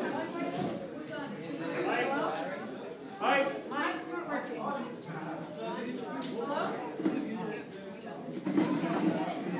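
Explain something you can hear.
An elderly woman speaks through a microphone and loudspeakers in a room that echoes a little.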